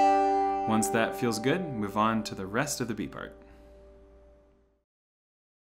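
A banjo's strings ring out and fade.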